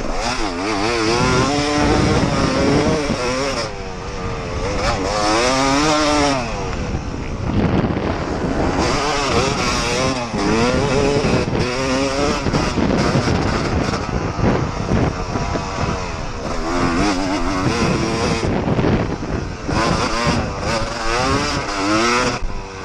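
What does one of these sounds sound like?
Wind roars past close by.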